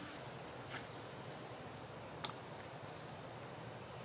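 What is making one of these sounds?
Shells clatter as they are set down on a wooden board.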